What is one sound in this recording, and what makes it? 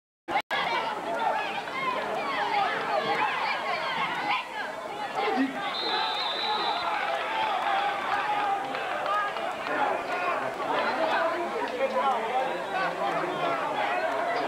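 A crowd of spectators chatters and calls out nearby.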